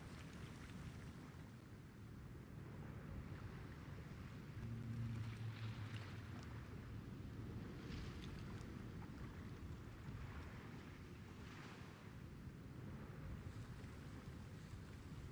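Water laps gently against a ship's hull.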